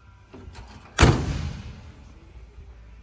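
A truck door slams shut with a heavy thud and brief echo.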